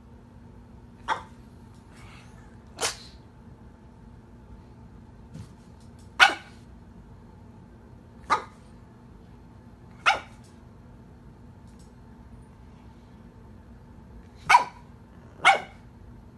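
A pug snorts and snores in its sleep.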